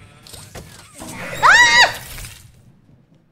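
A young woman screams shrilly close to a microphone.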